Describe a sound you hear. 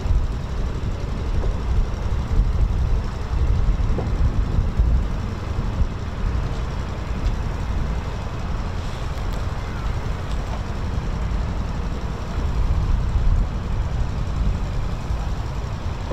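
Wind buffets and rumbles steadily outdoors.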